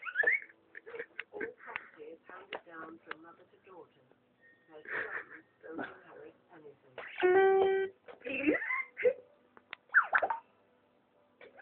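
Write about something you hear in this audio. An electronic toy plays short tunes and chimes as its buttons are pressed.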